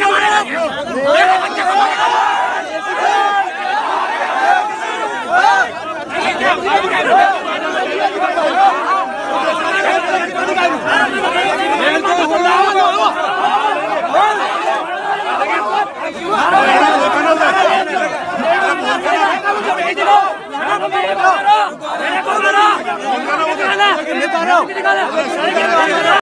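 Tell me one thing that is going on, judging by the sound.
A crowd of men argue loudly and shout close by.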